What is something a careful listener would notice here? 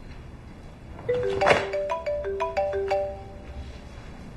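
A phone gives a short run of electronic tones.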